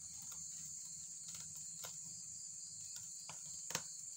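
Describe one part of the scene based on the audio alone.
Hands pull apart the soft husk of a fruit with faint rustling and creaking.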